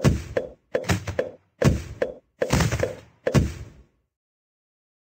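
Game sound effects pop in a rapid series of bursts.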